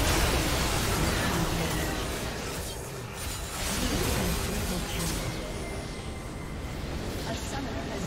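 Magic spells whoosh and crackle in a video game battle.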